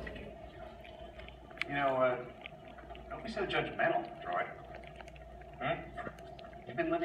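A man gulps a drink from a bottle.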